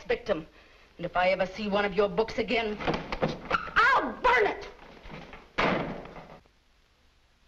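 A middle-aged woman speaks with animation.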